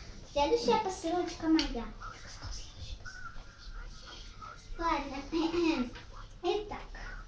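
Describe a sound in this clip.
A young girl talks in a high, lively voice close by.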